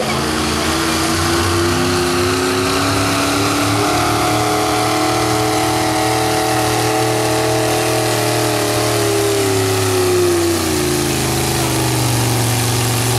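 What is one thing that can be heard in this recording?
A pickup truck engine roars loudly at high revs, its pitch wavering as it strains.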